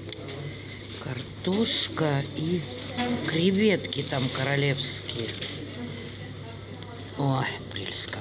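Cardboard food boxes rustle softly as food is picked up.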